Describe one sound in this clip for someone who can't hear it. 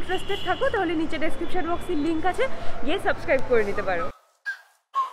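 A young woman speaks close by, with animation.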